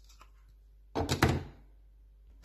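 A plastic blender cup clicks onto the motor base.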